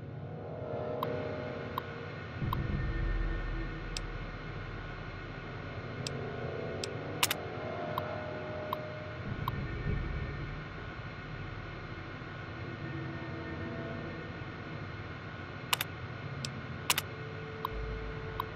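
Short electronic clicks and ticks sound as text is typed out on a computer terminal.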